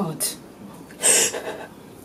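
A woman sniffs.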